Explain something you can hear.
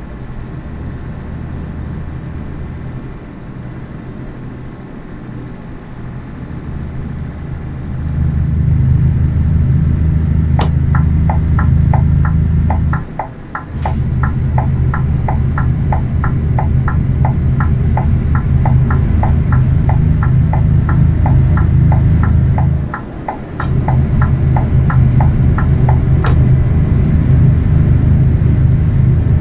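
A truck engine drones steadily and grows louder, dipping briefly as gears change.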